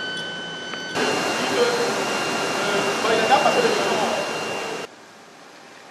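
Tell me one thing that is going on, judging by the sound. A fire hose sprays water with a loud, steady hiss.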